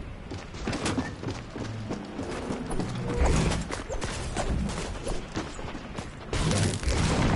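Footsteps patter quickly up wooden stairs.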